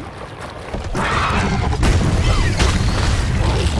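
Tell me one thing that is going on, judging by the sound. Flames roar and crackle in a sudden burst.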